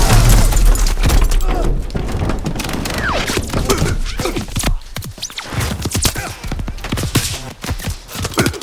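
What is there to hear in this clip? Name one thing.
Explosions boom and crack close by.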